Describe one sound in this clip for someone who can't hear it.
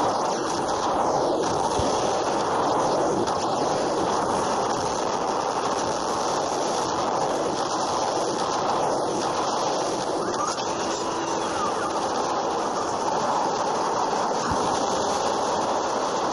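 Cannons fire in bursts of loud blasts.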